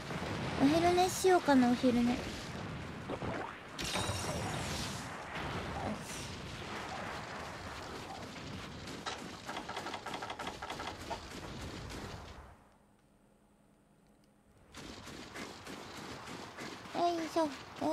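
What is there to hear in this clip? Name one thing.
Game footsteps patter on sand as a character runs.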